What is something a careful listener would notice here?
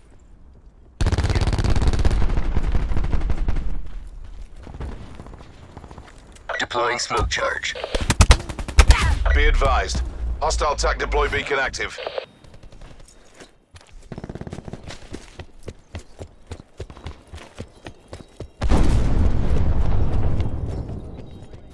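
A light machine gun fires.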